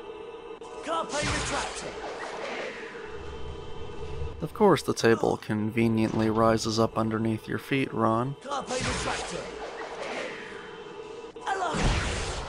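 A chime sparkles as a spell swirls upward.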